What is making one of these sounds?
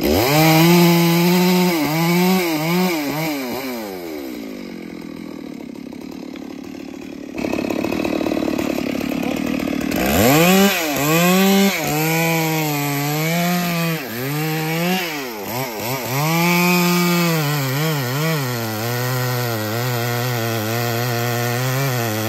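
A chainsaw engine revs up and down loudly.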